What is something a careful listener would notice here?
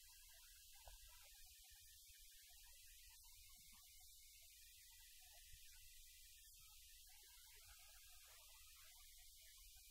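A small group of people sings softly in a room.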